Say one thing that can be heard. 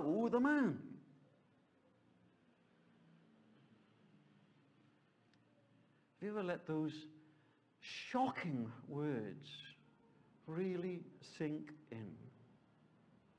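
An elderly man speaks calmly, pausing between phrases.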